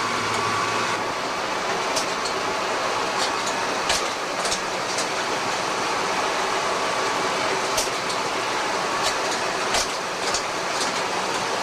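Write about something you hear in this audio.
A printer whirs with quick, sharp clicks.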